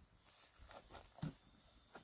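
Wooden boards knock together as they are handled.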